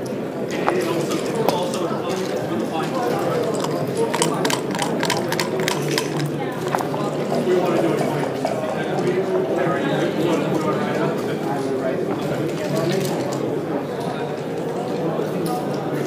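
Game pieces click as they are moved on a board.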